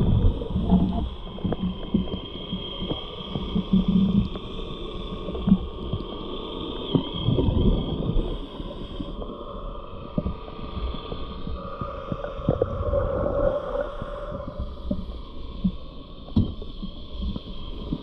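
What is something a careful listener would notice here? A diver breathes out through a regulator underwater.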